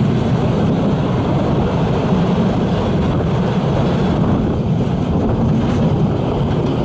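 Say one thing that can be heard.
A steam train rumbles and clatters along the tracks nearby.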